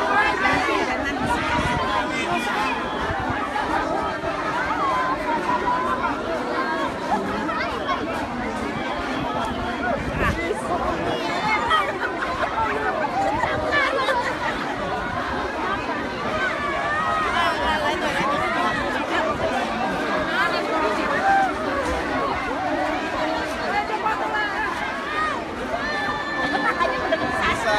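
A large crowd of men and women chatters and shouts excitedly close by, outdoors.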